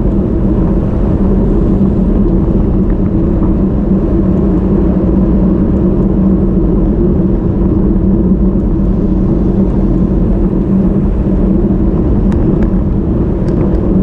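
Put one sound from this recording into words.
Strong wind rushes loudly past the microphone throughout.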